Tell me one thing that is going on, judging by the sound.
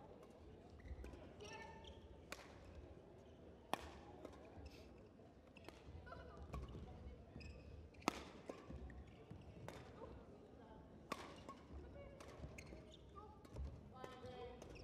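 Badminton rackets strike a shuttlecock in a rally, in a large echoing hall.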